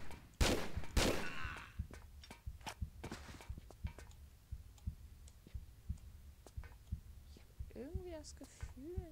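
Footsteps thud steadily on a metal floor.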